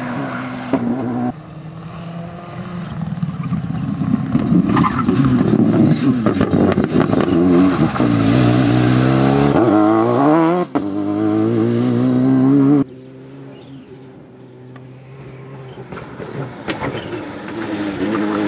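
A rally car engine revs hard through gear changes as the car speeds past on tarmac.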